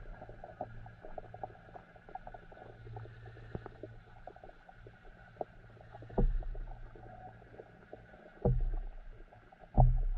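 Water murmurs and crackles faintly, heard from underwater.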